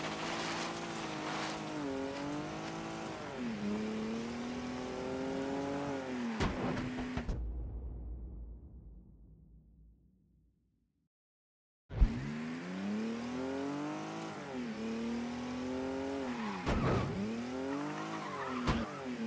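A sports car engine revs up and down loudly.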